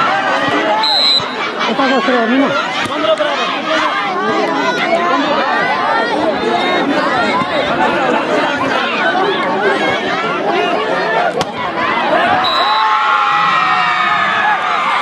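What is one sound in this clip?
A large crowd cheers and shouts loudly outdoors.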